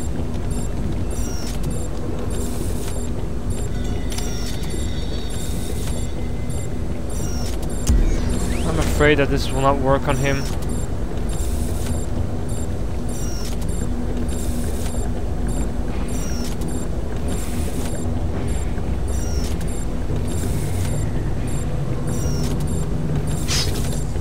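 Machinery hums low and steadily.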